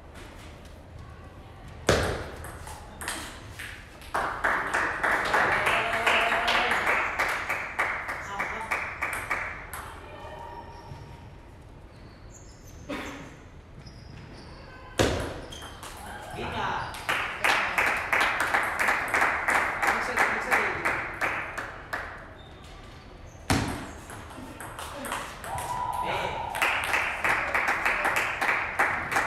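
A table tennis ball clicks rapidly back and forth off paddles and the table in a large echoing hall.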